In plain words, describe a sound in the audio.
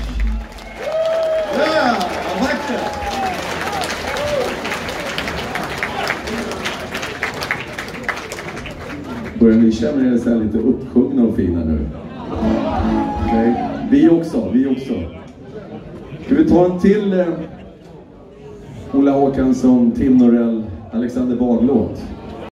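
An older man sings into a microphone.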